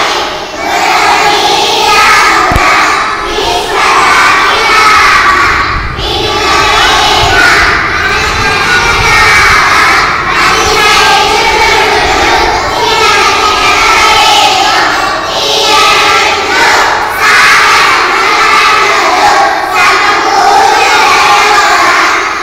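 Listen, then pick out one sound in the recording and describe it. A group of young children sing together in chorus in an echoing room.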